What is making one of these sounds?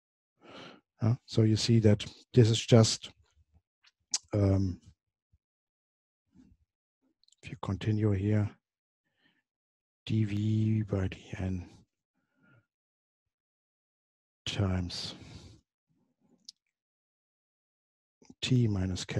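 A man speaks calmly and clearly into a close microphone, pausing between phrases.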